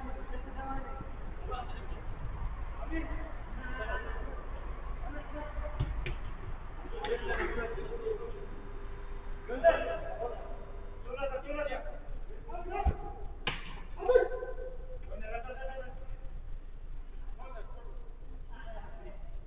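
Young men shout and call out to each other across an echoing indoor pitch.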